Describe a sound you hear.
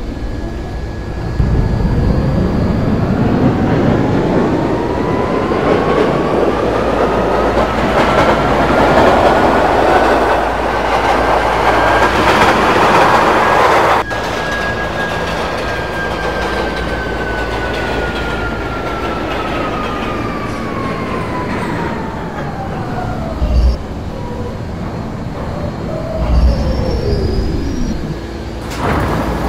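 A subway train's electric motor whines, rising steadily in pitch as it speeds up and then falling as it slows to a stop.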